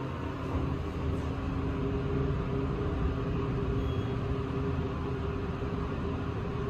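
An elevator car hums and rumbles as it travels.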